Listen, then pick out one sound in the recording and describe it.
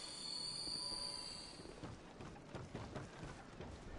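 Hands and feet knock on a wooden ladder while climbing.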